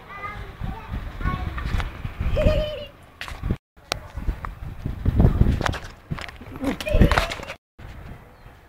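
Young children shout and chatter outdoors nearby.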